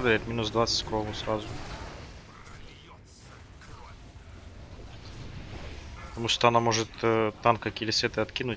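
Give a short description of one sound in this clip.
Magic spells crackle and whoosh in a battle.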